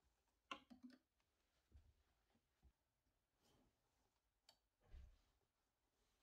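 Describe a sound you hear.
Clothes hangers click and scrape along a rail.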